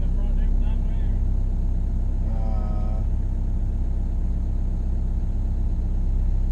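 A heavy diesel engine rumbles steadily from inside a machine cab.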